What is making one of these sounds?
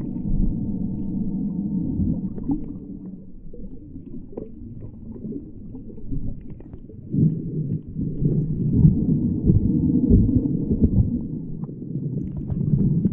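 Water rushes and churns in a low, muffled underwater rumble, heard close.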